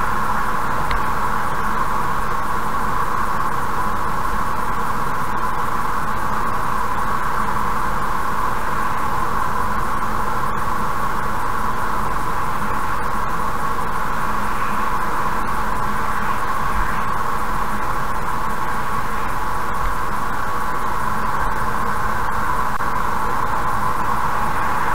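Tyres roll steadily on a highway at speed.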